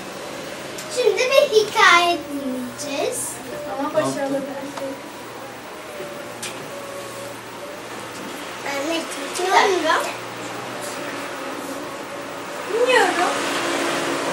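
Young boys talk in high voices close by.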